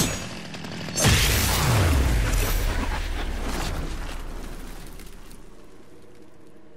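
A heavy explosion booms and rumbles away slowly.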